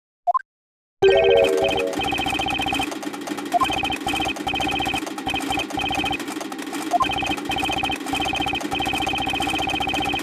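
Tense game music plays steadily.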